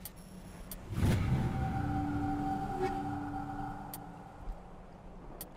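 A short electronic tone hums and rings as a lock is overridden.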